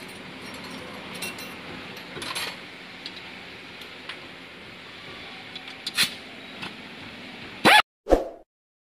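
Metal tools clink and scrape against car suspension parts.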